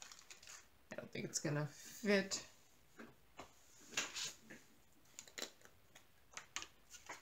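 Small plastic containers click and tap as they are handled.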